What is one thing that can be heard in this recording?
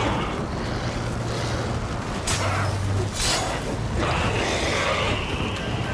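Sword blows strike with sharp clangs.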